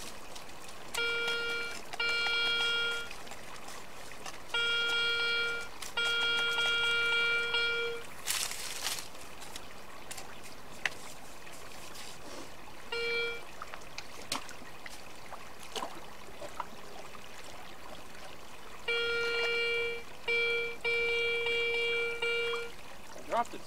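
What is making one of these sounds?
A metal detector beeps in short, steady tones.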